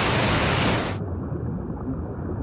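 Water bubbles and rumbles underwater.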